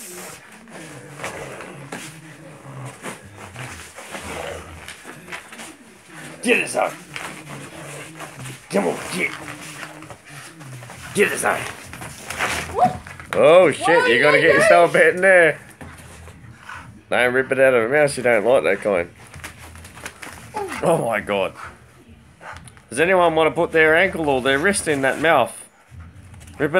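A pit bull growls while tugging on a rope toy.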